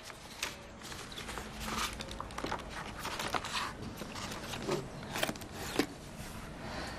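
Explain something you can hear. Paper sheets slide into a tray with soft clatters.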